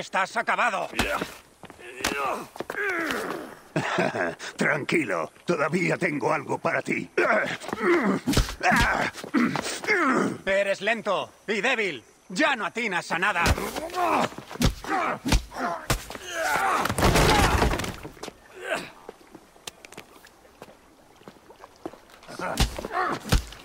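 Punches and blows land with sharp thuds.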